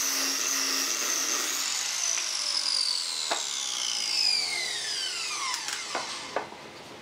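A power saw whines loudly and then winds down.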